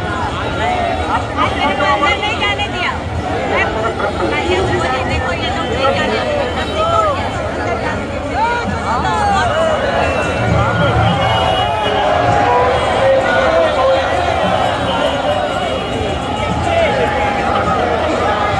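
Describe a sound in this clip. A large crowd chatters and cheers loudly outdoors.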